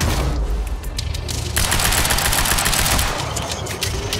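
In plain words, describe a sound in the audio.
An explosion booms and debris clatters down.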